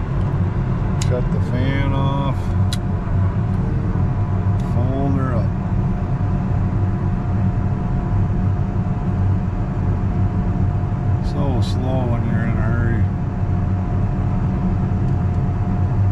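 A tractor engine drones steadily from inside the cab.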